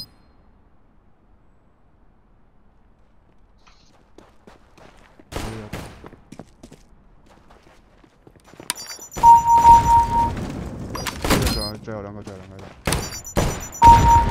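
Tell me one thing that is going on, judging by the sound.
Footsteps tread over a hard stone floor.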